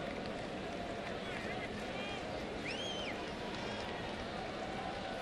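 A large crowd murmurs and chatters steadily in an open stadium.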